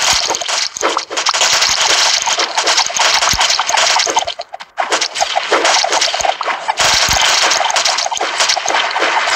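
Rapid video game gunfire crackles and pops nonstop.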